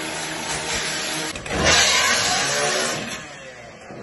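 A power saw grinds loudly through metal.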